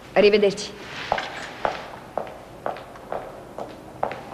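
Footsteps walk away across a hard floor.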